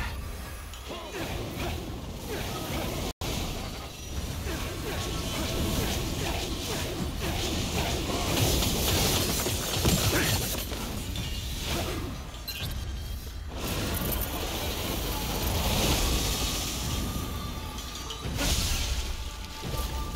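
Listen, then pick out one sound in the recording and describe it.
Magic blasts whoosh and burst in quick bursts.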